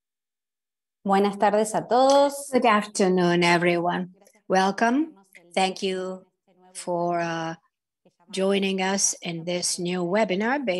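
A young woman speaks with animation through a headset microphone on an online call.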